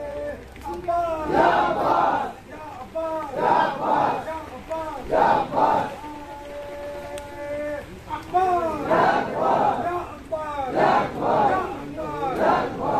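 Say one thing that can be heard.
A crowd of men chants loudly in unison outdoors.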